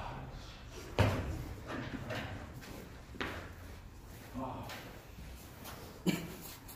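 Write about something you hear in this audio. Feet thud onto the floor as a man drops down.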